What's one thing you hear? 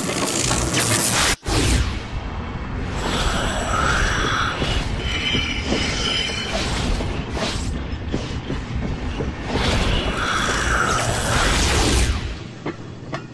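A craft roars as it rushes through a tunnel.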